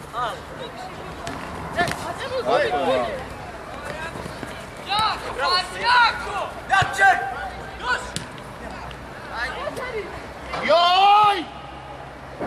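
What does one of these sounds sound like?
Football players shout to each other across an open field.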